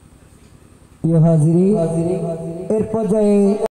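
A boy sings loudly into a microphone through a loudspeaker.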